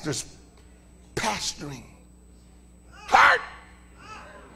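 A man shouts with passion through a microphone in a large echoing room.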